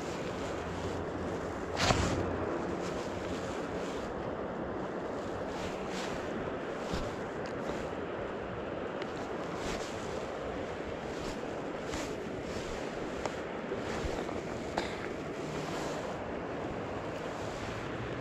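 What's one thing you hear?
Jacket fabric rustles close by.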